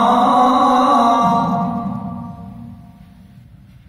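A man chants a long, held note through a microphone in an echoing room, and the note slowly fades away.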